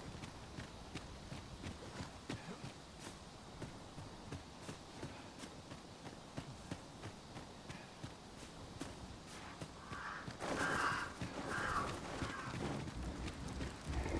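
Footsteps crunch steadily through dry grass.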